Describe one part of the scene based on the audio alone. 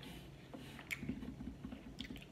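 A woman chews food with soft, steady smacking.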